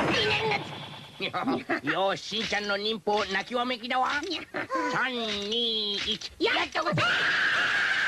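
Cartoon characters shout and yelp excitedly in high voices.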